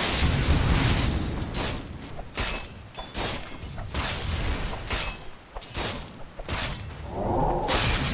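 Game spells and weapon strikes clash and zap in quick bursts.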